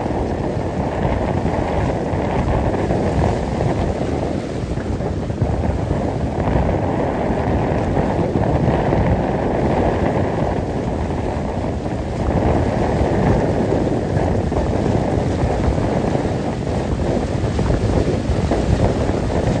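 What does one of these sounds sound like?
Waves wash and splash on the shore.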